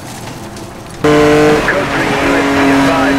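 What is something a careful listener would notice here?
A sports car engine roars loudly at high revs.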